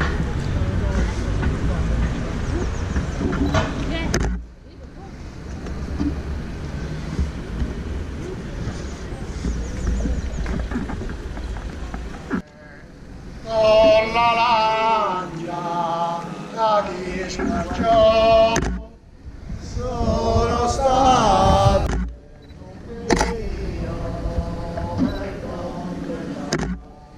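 Footsteps of a slow procession shuffle on paving stones.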